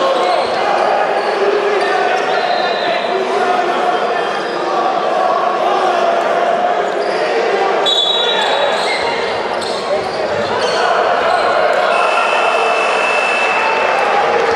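A crowd of spectators murmurs and chatters throughout an echoing indoor arena.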